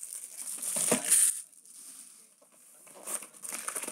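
A cardboard box scrapes and rubs as it is moved.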